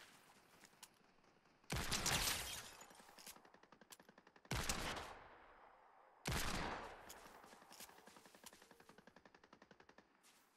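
Rapid footsteps patter on grass.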